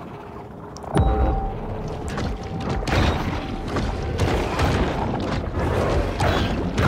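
A shark bites into prey with crunching thuds.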